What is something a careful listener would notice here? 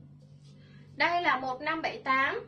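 A young woman speaks up close with animation.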